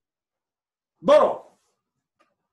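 A man shouts a sharp cry close by.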